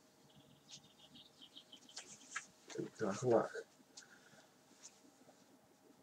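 Fabric rustles softly as a tie is pulled and knotted.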